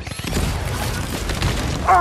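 An explosion bursts in a video game.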